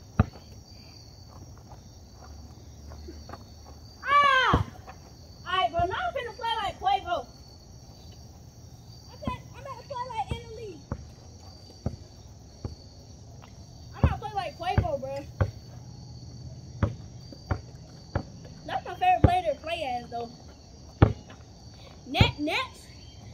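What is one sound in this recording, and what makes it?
A basketball bounces with dull thuds on the ground.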